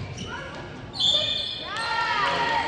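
A referee's whistle blows shrilly in an echoing gym.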